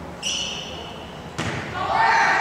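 A volleyball is struck hard with a slap.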